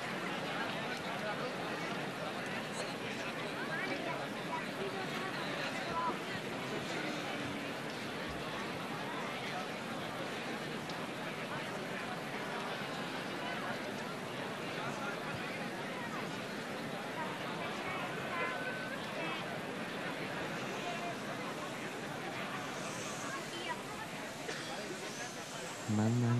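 A large crowd murmurs outdoors with many voices at once.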